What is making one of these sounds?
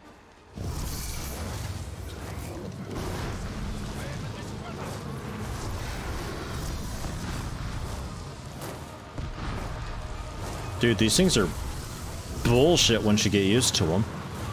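A dragon breathes fire with a steady roaring rush.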